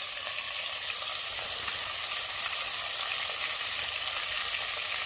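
Oil sizzles and crackles steadily in a hot pot.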